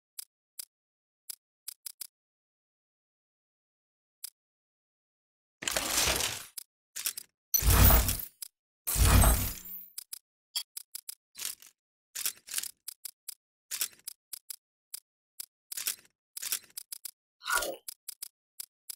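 Short electronic menu clicks tick again and again.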